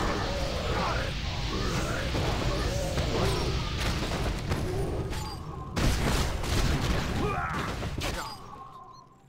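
Weapons clash and clang in a fight.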